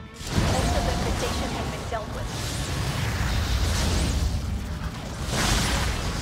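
Gunfire and blasts crackle in a noisy battle.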